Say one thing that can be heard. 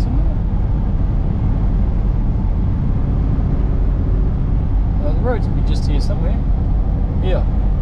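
Wind rushes against the vehicle.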